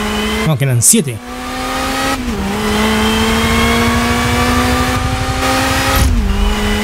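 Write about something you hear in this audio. A racing car engine roars at high revs, dropping in pitch with each gear shift before climbing again.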